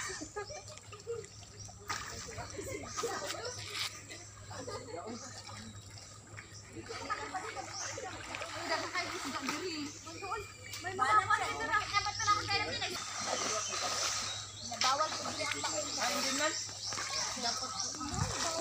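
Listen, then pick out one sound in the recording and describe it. Water splashes as people wade.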